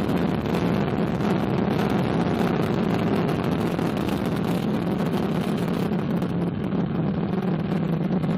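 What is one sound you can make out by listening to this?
A rocket engine roars with a deep, steady rumble in the distance.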